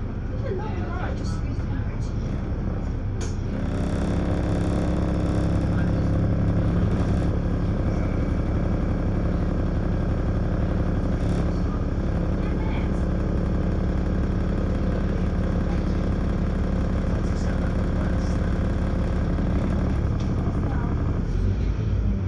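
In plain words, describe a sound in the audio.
A bus engine idles with a steady low rumble.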